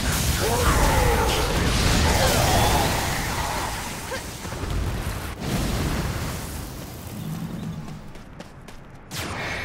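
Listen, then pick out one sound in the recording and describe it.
Flames roar and burst loudly.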